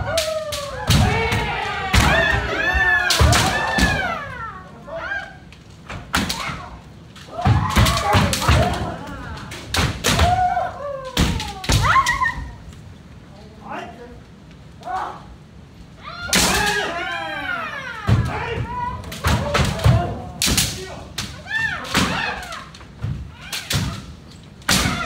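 Kendo fighters shout loud, drawn-out cries, echoing through a large hall.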